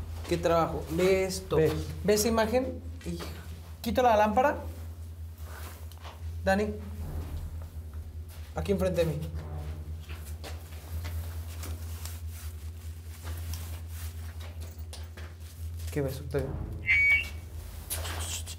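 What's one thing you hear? A man speaks in a low, hushed voice nearby.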